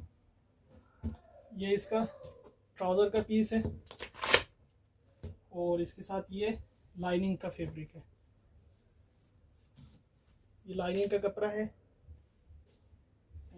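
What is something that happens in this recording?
Fabric rustles as hands unfold and handle cloth.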